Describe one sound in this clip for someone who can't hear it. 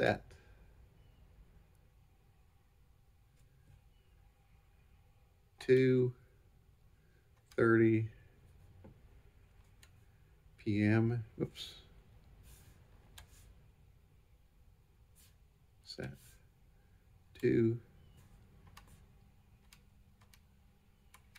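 Buttons click faintly as keys are pressed.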